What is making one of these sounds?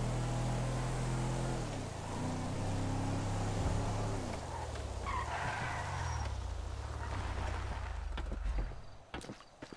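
A car engine hums and shifts pitch as the car drives along.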